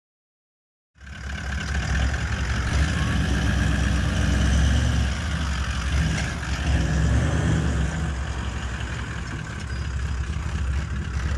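A truck engine rumbles and strains over rough ground.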